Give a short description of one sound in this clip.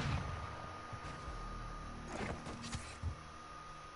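A knife slashes with a swift whoosh.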